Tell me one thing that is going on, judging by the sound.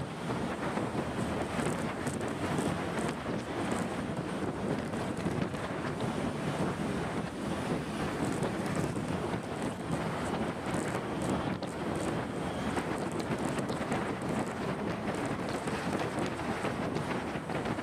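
Wind roars steadily against a motorcycle rider's helmet.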